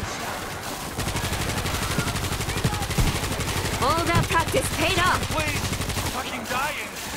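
A machine gun fires in a rapid, steady burst.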